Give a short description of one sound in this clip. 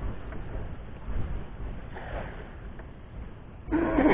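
A cast net splashes into the water.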